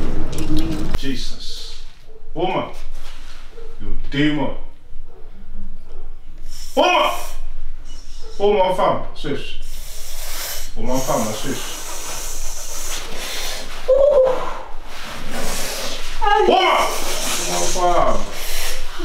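A woman sobs and wails loudly, close by.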